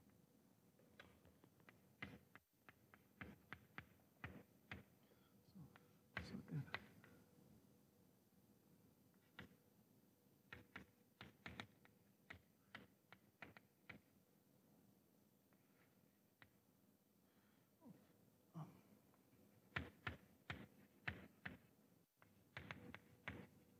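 Chalk taps and clicks on a board.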